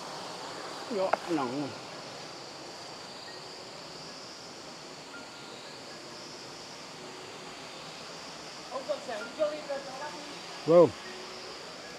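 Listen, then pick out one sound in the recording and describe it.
A man speaks calmly nearby.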